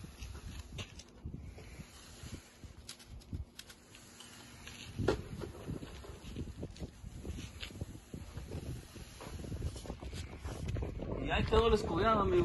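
A broom brushes across wet concrete with a soft scraping swish.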